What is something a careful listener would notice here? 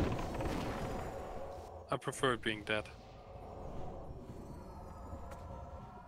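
Game spells crackle and clash in a busy battle.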